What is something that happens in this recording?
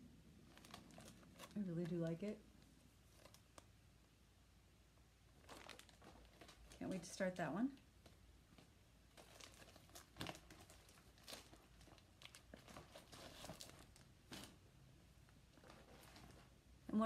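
Paper and a plastic sleeve rustle and crinkle in hands.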